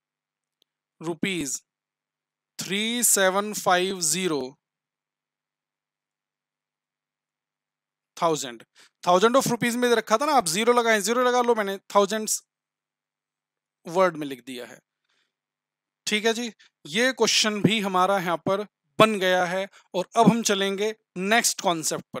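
A man speaks calmly and clearly into a close microphone, in bursts with pauses.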